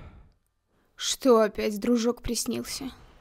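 A young woman speaks quietly and with concern, close by.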